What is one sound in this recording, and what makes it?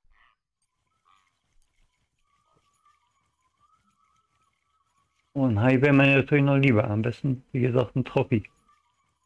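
A fishing reel whirs softly as line is wound in.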